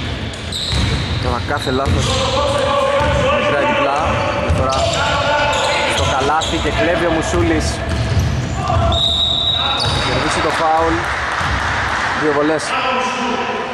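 Sneakers squeak sharply on a court in an echoing hall.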